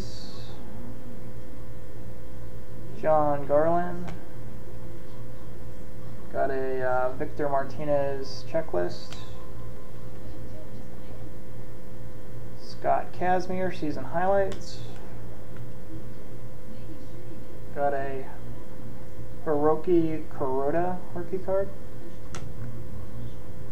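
Trading cards rustle and click as they are shuffled in hands.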